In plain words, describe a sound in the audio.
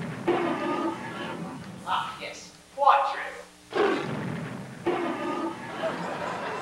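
A man speaks hesitantly on a stage.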